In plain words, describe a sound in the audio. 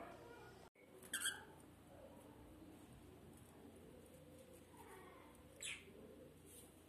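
A canary chirps briefly.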